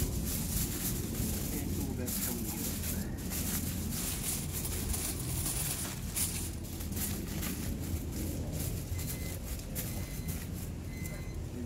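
Plastic gloves rustle and crinkle.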